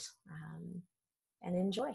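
A woman laughs softly over an online call.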